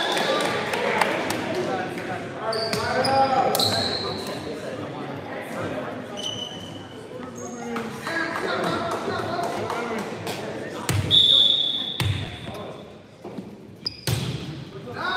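A volleyball smacks against hands with a sharp thump.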